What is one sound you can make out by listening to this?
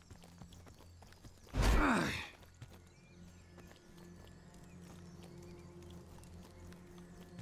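Footsteps crunch on soft forest ground.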